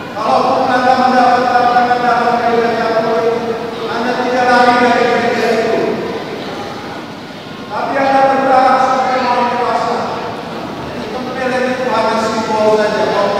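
A large congregation sings together, echoing through a big hall.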